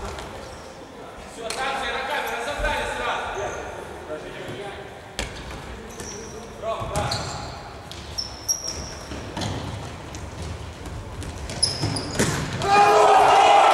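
Sneakers squeak on the hall floor.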